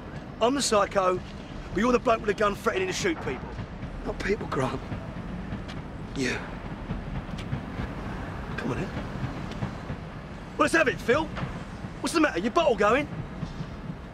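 A middle-aged man speaks tensely and angrily nearby.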